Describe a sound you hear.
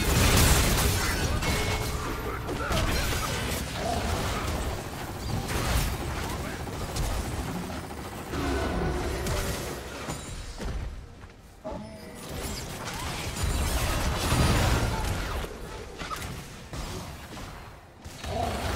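Video game spells burst and crackle during a fight.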